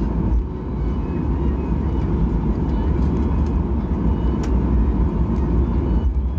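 A jet engine roars steadily as a plane taxis.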